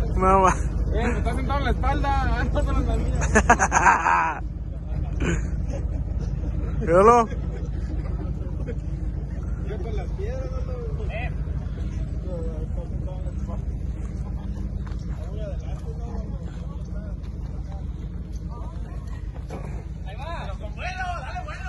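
Young men shout and laugh excitedly nearby.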